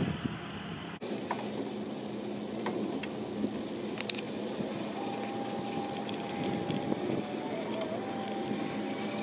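An electric forklift hums as it drives slowly.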